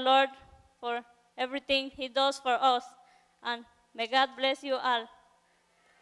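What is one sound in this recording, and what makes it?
A young woman speaks into a microphone over loudspeakers in an echoing hall.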